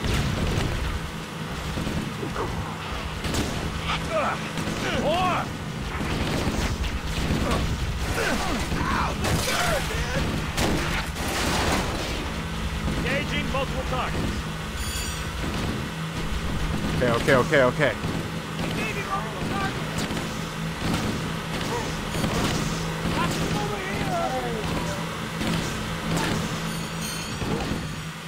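Engines of racing vehicles hum steadily.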